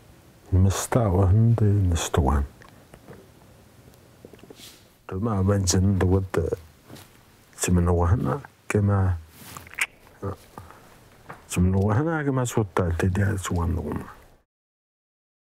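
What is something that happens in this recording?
A middle-aged man speaks slowly in a strained voice, close by.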